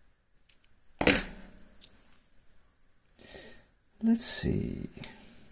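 A metal lock cylinder knocks and clicks on a hard surface.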